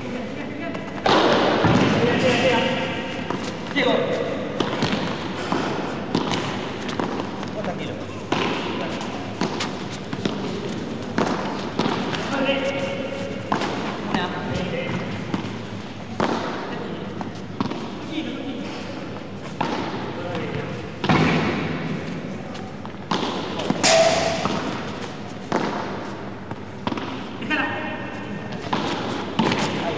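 Sound echoes in a large indoor hall.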